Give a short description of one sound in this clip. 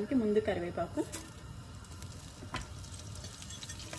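Leaves drop softly into a pan of oil.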